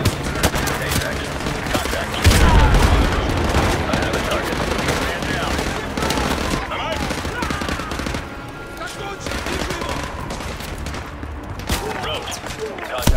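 Gunfire crackles in rapid bursts nearby.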